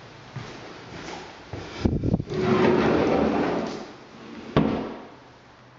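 A door knocks and rattles as it is opened.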